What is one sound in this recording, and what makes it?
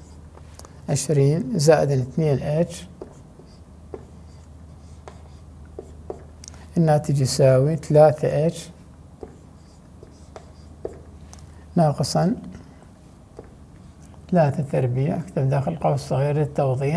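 A man speaks calmly and clearly close to a microphone, in short bursts.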